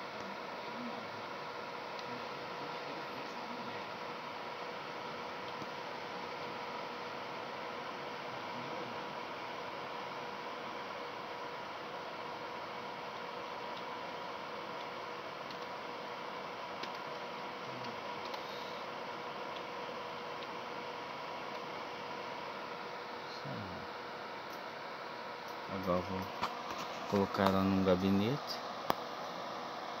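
A computer fan whirs with a steady hum.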